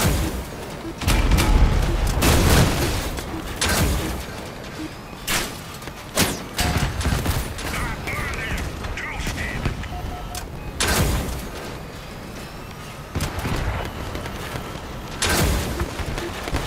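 Heavy guns fire with booming blasts.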